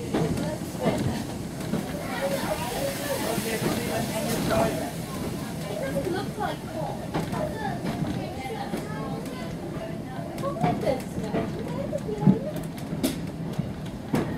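Another train passes close by with a rushing roar.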